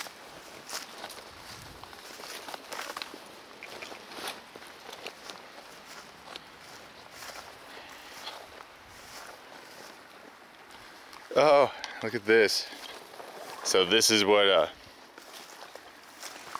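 Dry grass rustles and crackles underfoot.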